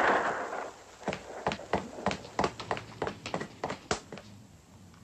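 Boots run across a hard floor.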